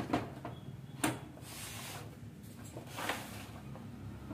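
Plastic printer parts knock and clatter as they are handled.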